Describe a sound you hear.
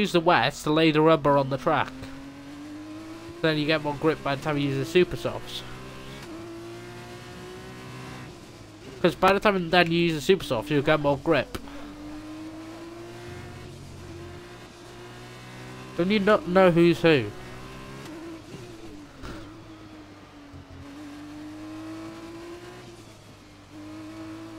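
A racing car engine whines steadily, rising and falling as it shifts gears.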